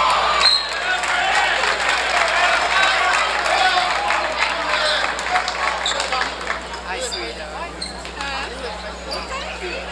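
Sneakers squeak sharply on the court.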